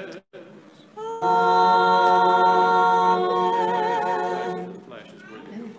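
Men sing a long, sustained chant that echoes in a large hall.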